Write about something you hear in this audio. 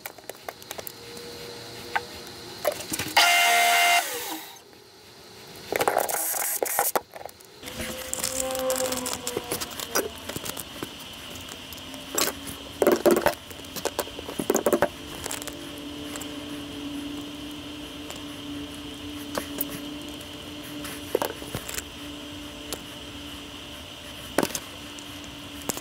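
Small metal parts click and clink as they are handled.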